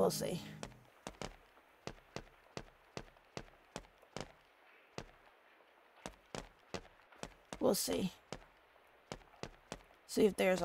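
Quick light footsteps tap in a steady run.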